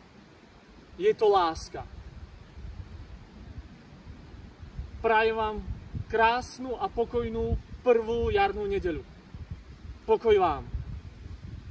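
A middle-aged man speaks calmly and close by, outdoors.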